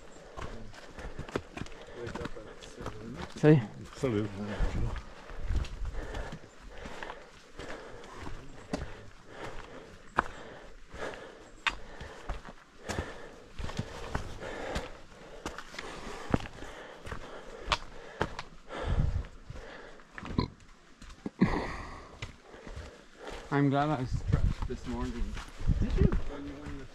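Footsteps crunch on a rocky trail.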